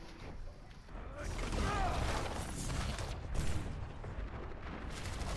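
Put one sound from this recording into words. Video game weapons fire and blasts go off in a busy fight.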